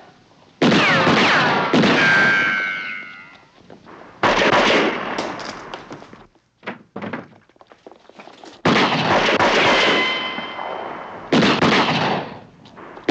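Loud gunshots crack and echo down a hallway.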